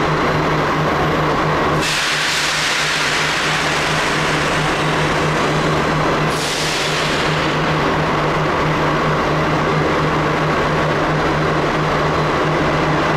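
A train rumbles slowly as it approaches.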